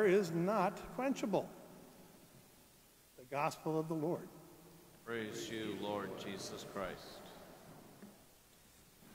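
An elderly man speaks through a microphone in a large echoing room.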